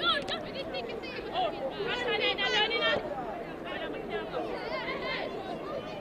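A crowd of spectators chatters nearby.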